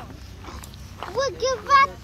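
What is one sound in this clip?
A young boy talks loudly close by.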